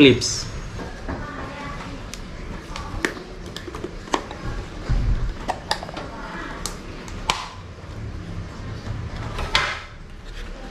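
Hands open and handle a cardboard box.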